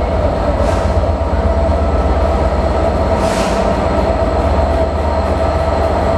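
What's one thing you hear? A locomotive's wheels rumble and squeal on the rails.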